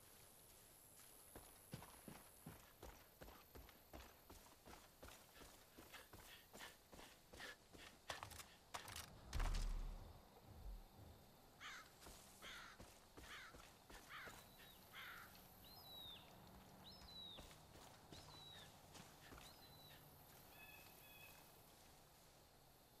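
Footsteps swish through tall dry grass at a steady walking pace.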